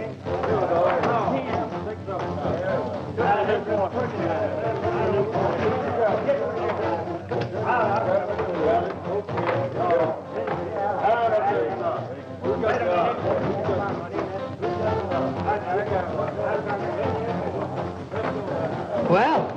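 A young woman sings with a full, swooping voice.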